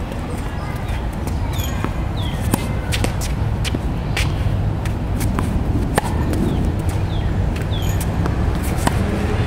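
Tennis balls bounce on a hard court.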